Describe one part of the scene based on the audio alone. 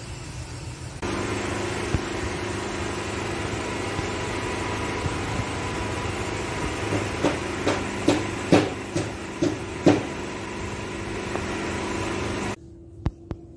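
A crane engine rumbles steadily nearby.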